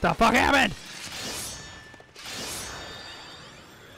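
A blade whooshes through the air in quick swings.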